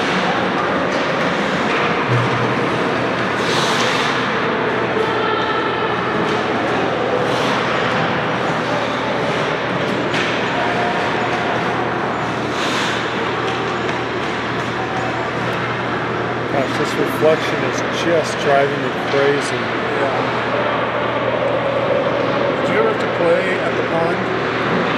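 Ice skates scrape and hiss across the ice in a large echoing rink.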